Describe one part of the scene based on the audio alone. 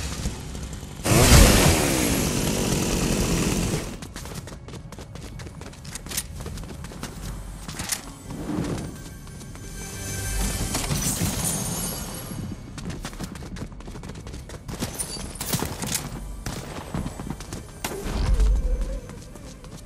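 Footsteps patter quickly across wooden and stone floors.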